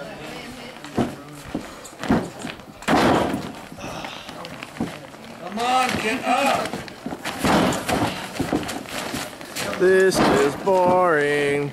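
A body thuds on a wrestling mat.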